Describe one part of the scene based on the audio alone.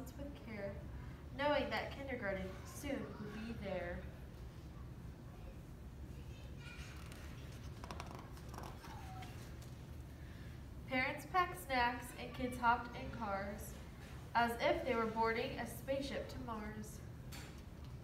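A young woman reads aloud in an animated voice, close by.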